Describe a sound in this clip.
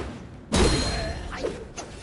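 A heavy blow crashes with a burst of sparks.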